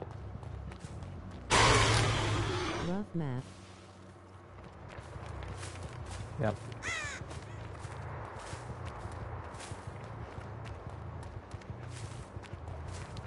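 Footsteps crunch quickly through snow and grass.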